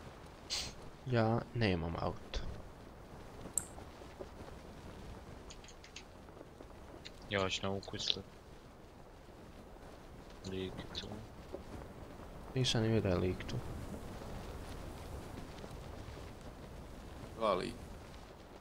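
A young man talks casually into a nearby microphone in short bursts.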